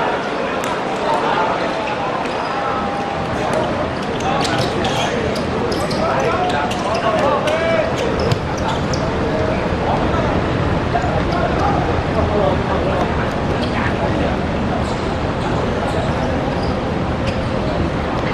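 A football thuds as players kick it on a hard court.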